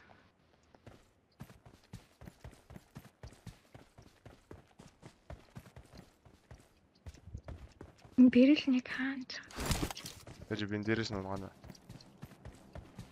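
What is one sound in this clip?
Quick footsteps crunch over dry ground.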